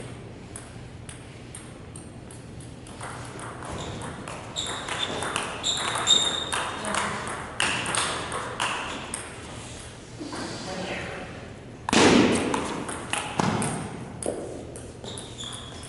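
Ping-pong balls click sharply against paddles and tables in a large, echoing hall.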